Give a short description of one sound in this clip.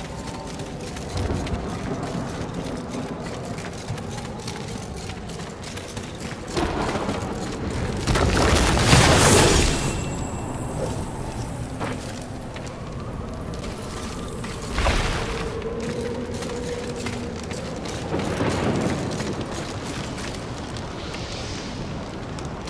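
Footsteps tread quickly on stone.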